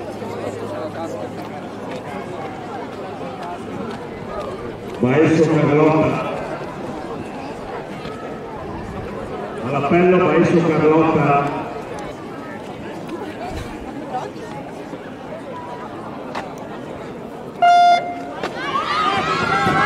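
A crowd of spectators murmurs in the background.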